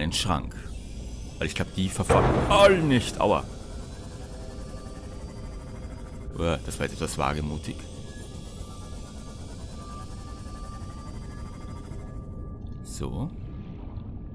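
A small submarine's engine hums steadily underwater.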